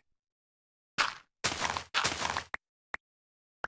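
Dirt blocks crumble under a pickaxe with soft gritty thuds.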